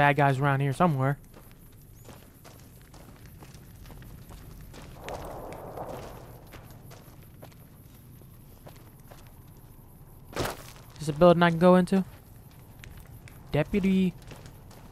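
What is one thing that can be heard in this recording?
Footsteps crunch steadily over gravel and dirt.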